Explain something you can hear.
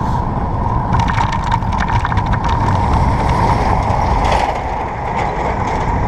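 A truck rushes past close by.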